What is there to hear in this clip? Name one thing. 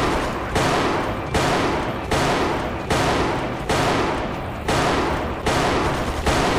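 A rifle fires loud shots at a steady pace.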